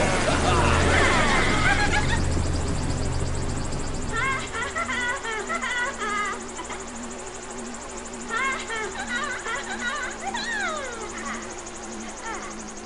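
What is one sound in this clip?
Cheerful video game music plays.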